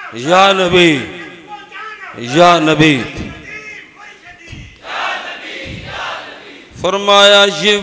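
A man chants in long, rising and falling phrases, with short pauses between them.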